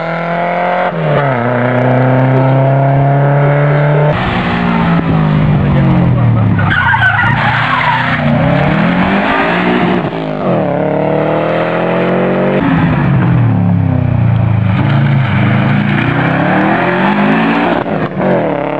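A rally car engine revs hard and roars past, shifting gears.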